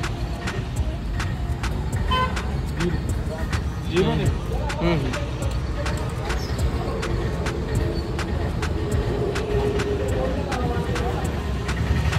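A fuel pump hums steadily.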